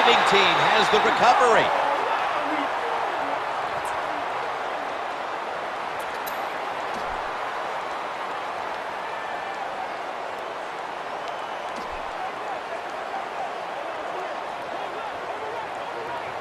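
A large stadium crowd roars loudly, then settles into a steady murmur.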